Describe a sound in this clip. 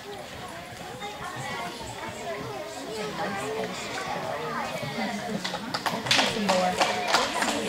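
Young girls chatter nearby in an echoing hall.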